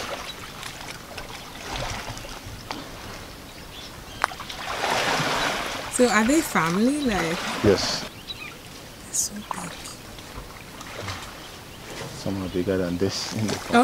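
Elephants splash and wade through shallow water.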